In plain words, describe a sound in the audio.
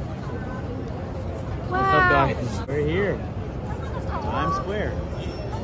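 A busy outdoor crowd murmurs in the background.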